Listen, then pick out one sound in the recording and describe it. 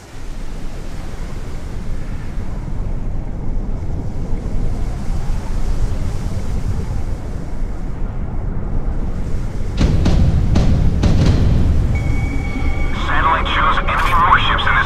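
Waves splash against a ship's hull.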